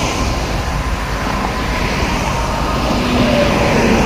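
A bus drives past on a highway.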